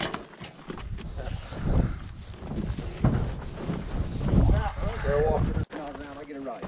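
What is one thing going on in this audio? A man speaks casually nearby outdoors.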